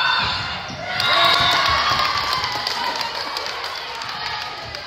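Spectators cheer and shout.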